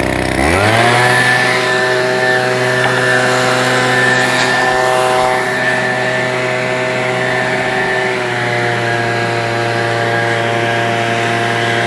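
A leaf blower motor spins up and drones loudly and steadily.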